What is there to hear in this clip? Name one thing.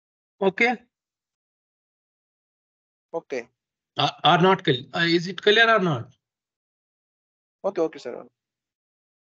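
A young man speaks calmly in short bursts through an online call.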